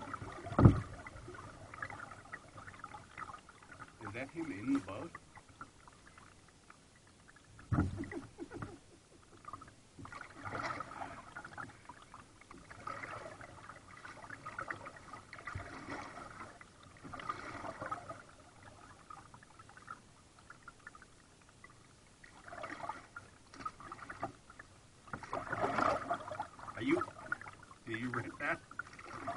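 Water laps and splashes gently against a kayak's hull in short bursts.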